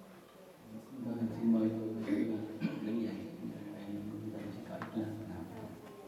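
An elderly man chants through a microphone.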